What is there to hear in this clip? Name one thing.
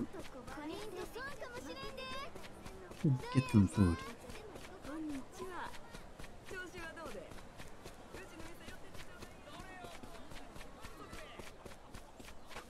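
Footsteps run quickly over packed dirt.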